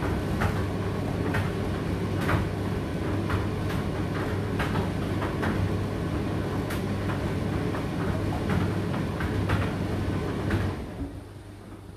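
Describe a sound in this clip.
Clothes and buttons knock inside a tumble dryer's spinning drum.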